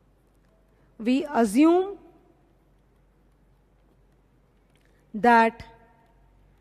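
A woman speaks calmly into a microphone, in short phrases.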